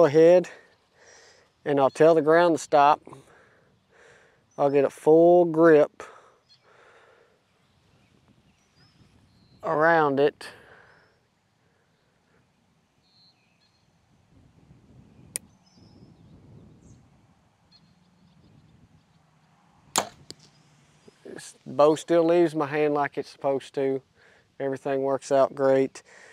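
A young man talks calmly and close to a microphone, outdoors.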